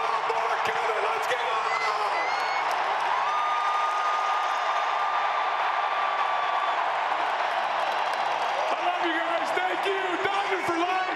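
A man shouts into a microphone over loudspeakers.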